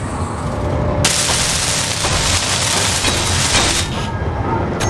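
A welding torch hisses and crackles in short bursts.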